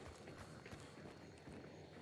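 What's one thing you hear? A gunshot cracks in the distance.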